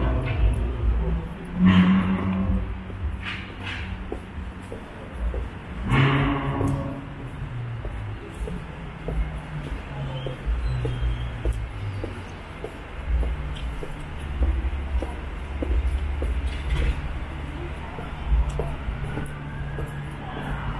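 Footsteps tap steadily on a pavement.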